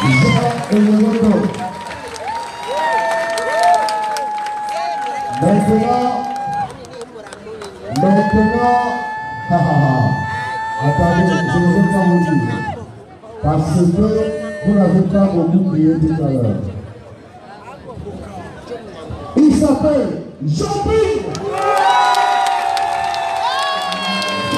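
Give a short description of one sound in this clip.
A large crowd sings loudly outdoors.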